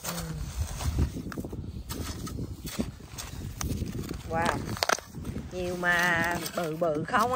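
A garden fork scrapes and crunches into stony soil.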